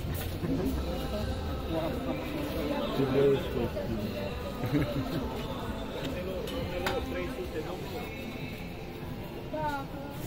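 A crowd murmurs around outdoors.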